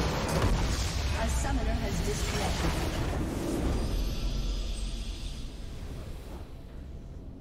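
A game structure explodes with a deep, rumbling blast.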